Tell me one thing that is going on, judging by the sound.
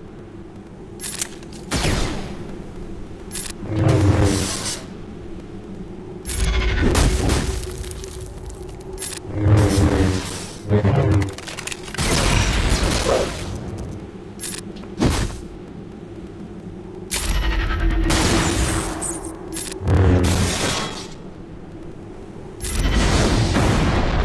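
Laser swords hum and clash in bursts.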